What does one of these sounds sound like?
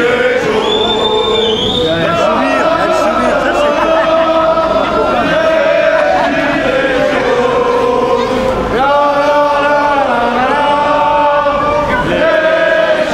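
A crowd of men and women sings loudly outdoors.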